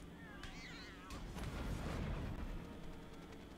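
A magic spell crackles and bursts.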